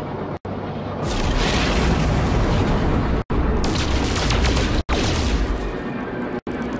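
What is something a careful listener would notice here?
A spaceship engine roars as it surges to a faster speed.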